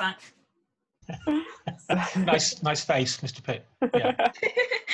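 People laugh over an online call.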